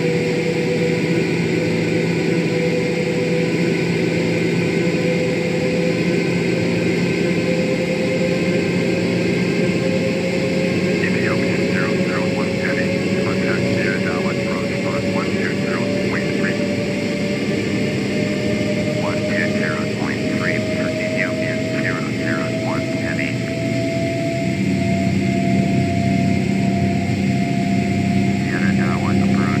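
A jet engine drones steadily with a slowly rising whine.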